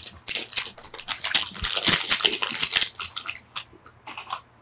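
A plastic wrapper crinkles and rustles close up.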